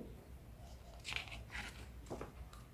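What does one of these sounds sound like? A book page turns with a soft paper rustle.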